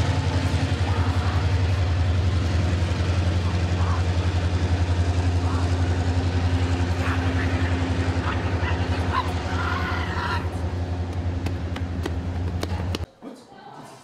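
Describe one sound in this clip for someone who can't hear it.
A locomotive engine rumbles steadily nearby.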